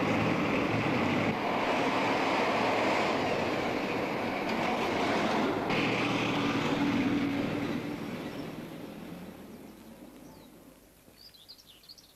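City traffic rushes past loudly, then fades away.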